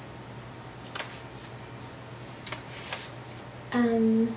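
Stiff paper rustles and flaps as pages are lifted and turned.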